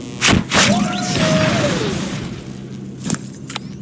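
A metal robot crashes to the ground with a clatter.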